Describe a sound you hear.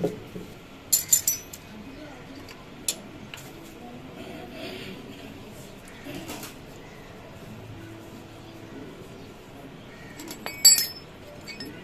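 Metal parts clink and knock together.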